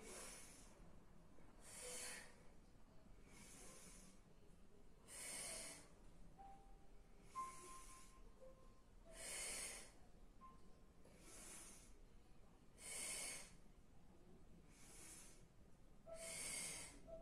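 A woman breathes out in strong, steady bursts, close by.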